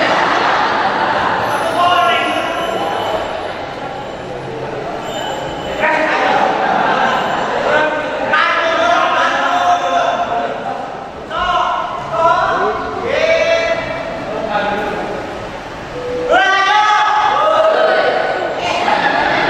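A second young man answers loudly through a microphone.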